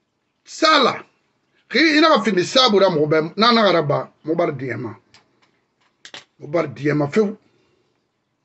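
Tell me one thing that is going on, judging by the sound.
A middle-aged man speaks with emphasis close to a microphone, pausing between phrases.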